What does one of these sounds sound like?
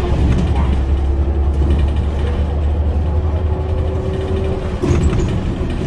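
Bus tyres roll on the road.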